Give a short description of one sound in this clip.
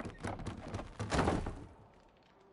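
A heavy thud sounds as a landing hits the ground.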